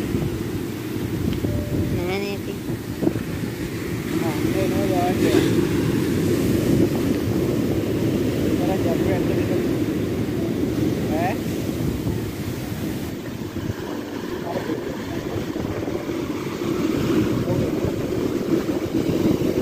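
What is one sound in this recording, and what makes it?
Foamy surf hisses as it washes up the sand.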